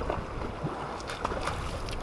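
A fish splashes in shallow water.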